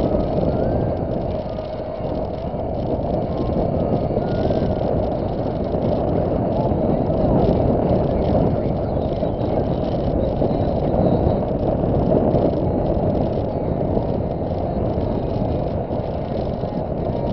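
A car engine hums steadily as tyres roll over the road.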